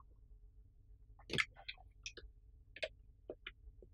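A telephone handset clicks as it is picked up.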